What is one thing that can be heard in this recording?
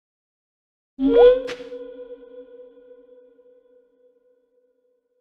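A short bright chime rings out and slowly fades.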